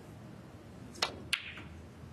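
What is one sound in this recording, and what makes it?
A cue strikes a ball with a sharp click.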